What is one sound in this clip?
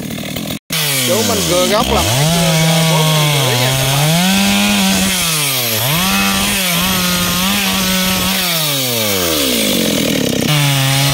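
A chainsaw engine runs loudly, revving up and down as it cuts wood.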